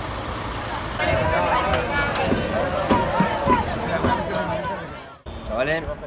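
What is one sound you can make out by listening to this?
A crowd of people cheers and shouts near a bus.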